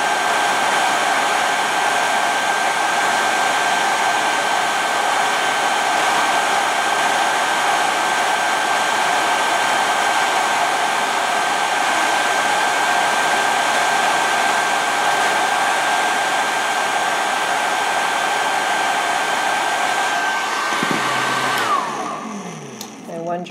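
A hair dryer blows with a steady whirring roar, then winds down.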